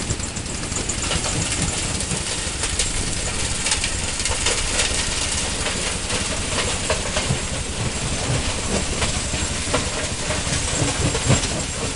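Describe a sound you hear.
A rock crusher grinds and rumbles.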